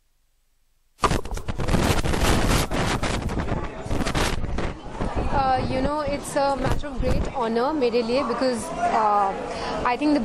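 A young woman speaks calmly into microphones up close.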